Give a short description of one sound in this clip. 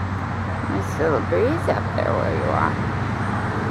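A young eagle gives a few high, quavering calls nearby.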